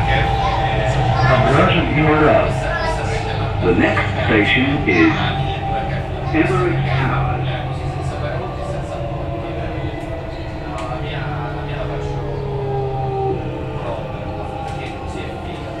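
A train hums and rumbles steadily as it runs along an elevated track.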